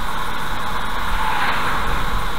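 A lorry rushes past close by.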